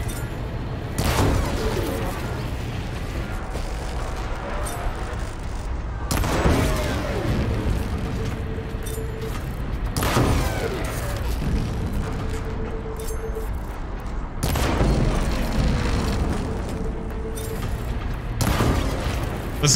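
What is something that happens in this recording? Loud booming blasts and crashes ring out now and then.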